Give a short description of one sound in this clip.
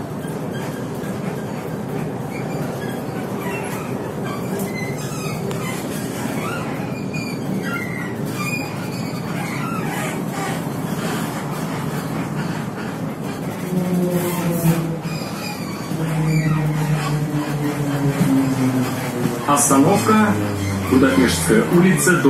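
A bus rumbles and rattles as it drives along.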